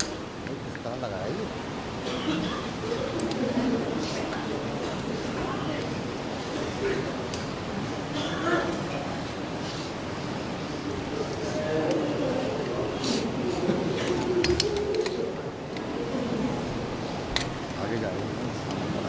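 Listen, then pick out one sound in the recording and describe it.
A crowd of men murmurs and responds in the background.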